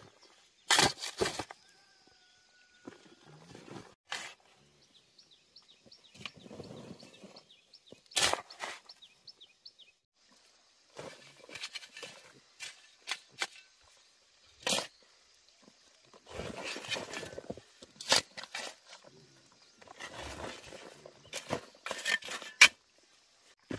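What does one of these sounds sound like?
A metal shovel scrapes and digs into dry soil.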